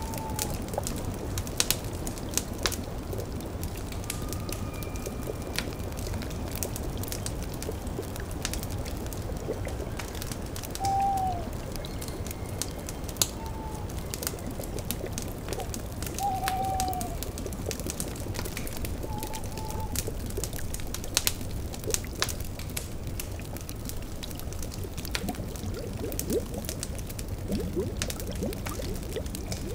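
A fire crackles and pops steadily.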